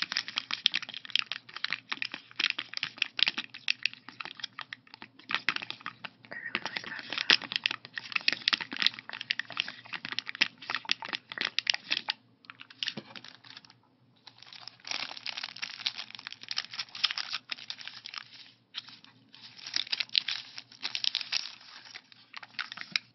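Plastic sticker sheets crinkle and rustle close by.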